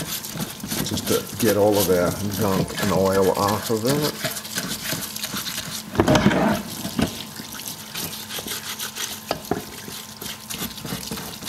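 A stiff brush scrubs briskly against metal.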